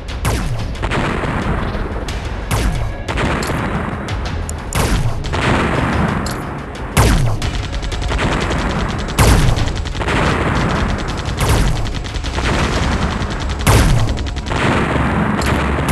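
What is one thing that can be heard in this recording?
Laser shots zap in rapid bursts.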